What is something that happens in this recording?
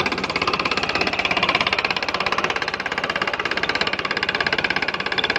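A belt and pulley rattle as a tube-well pump turns.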